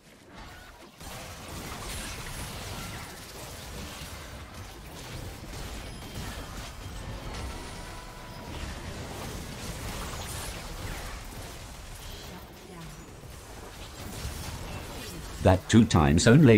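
Fighting sounds of swooshes and blasts clash in a game.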